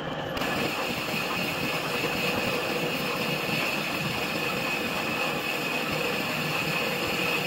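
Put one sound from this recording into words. A lathe cutting tool scrapes and squeals against the inside of a steel bore.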